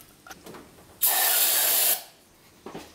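A spray can hisses in a short burst.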